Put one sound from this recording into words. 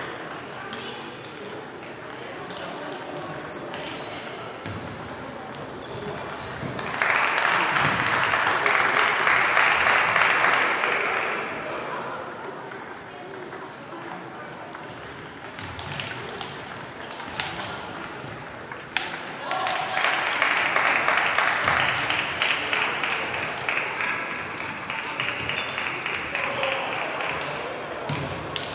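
A crowd of people murmurs and chatters far off.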